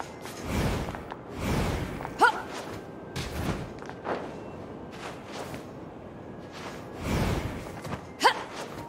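Heavy thuds land now and then.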